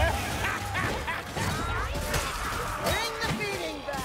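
Blades hack into flesh with heavy thuds.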